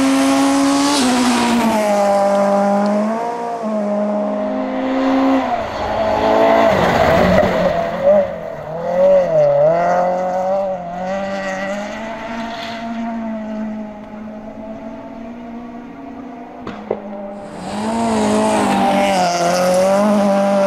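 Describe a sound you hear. A rally car engine revs hard and shifts gears as the car speeds past.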